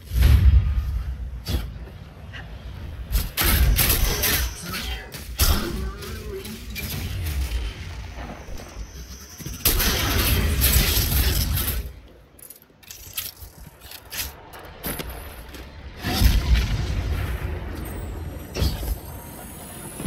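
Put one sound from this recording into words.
Gunfire bursts out in rapid blasts.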